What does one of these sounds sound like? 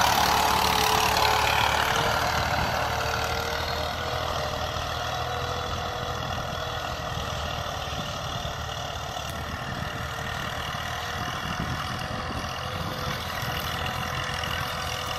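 A disc harrow scrapes and churns through dry soil.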